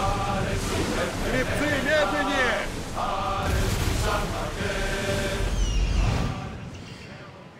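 Water splashes loudly as a swimmer strokes through waves.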